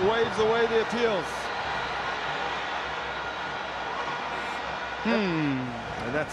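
A large stadium crowd murmurs and cheers steadily outdoors.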